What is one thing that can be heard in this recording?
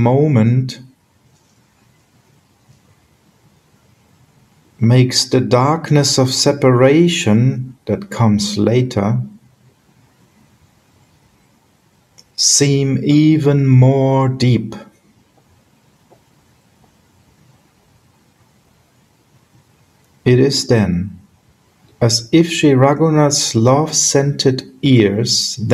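A middle-aged man speaks calmly in bursts through an online call, with pauses between.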